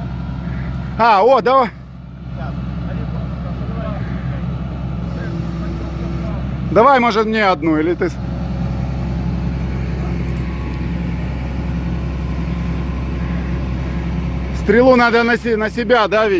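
A hydraulic crane whines in short bursts.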